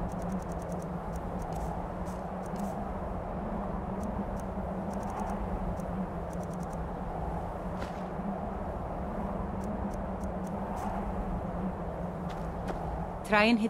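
Short soft clicks tick in quick bursts as a menu is scrolled.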